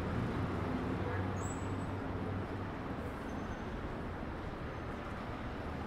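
Footsteps tap on pavement nearby.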